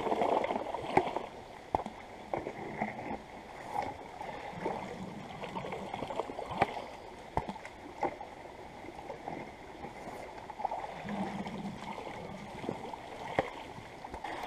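A plastic pipe knocks against rocks.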